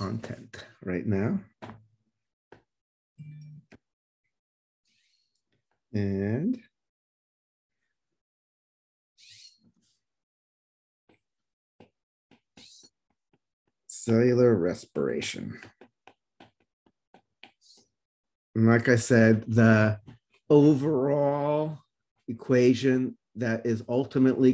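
A middle-aged man speaks calmly through a microphone on an online call.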